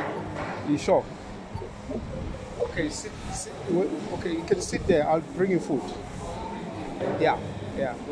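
An elderly man answers quietly.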